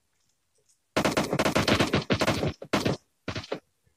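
Rapid gunshots crack out in short bursts.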